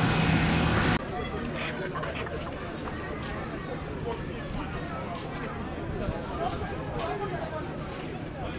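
Men talk nearby among a murmuring crowd outdoors.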